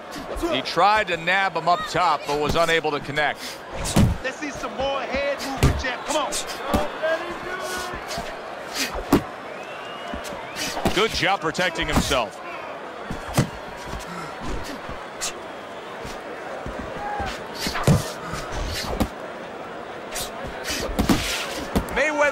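Boxing gloves thump sharply against a body in quick punches.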